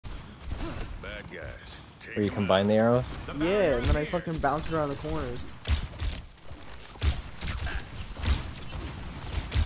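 A bow twangs as arrows are loosed in quick succession.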